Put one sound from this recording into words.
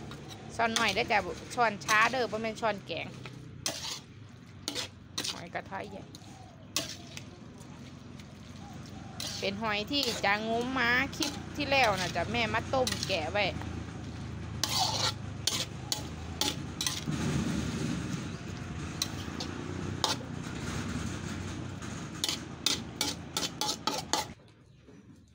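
A metal spatula scrapes and clatters against a metal wok.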